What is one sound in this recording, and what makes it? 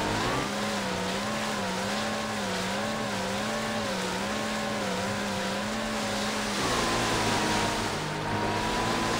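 Water rushes and splashes against a speeding hull.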